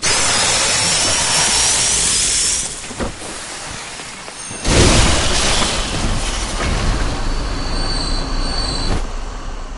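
Heavy footsteps splash through shallow water.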